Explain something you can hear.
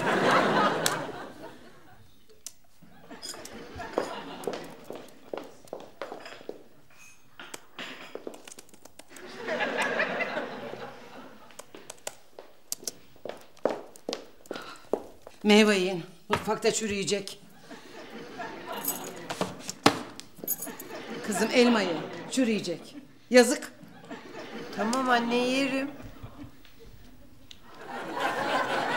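An elderly woman speaks with animation nearby.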